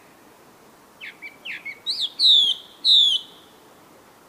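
A baby monkey squeals in short, high chirps.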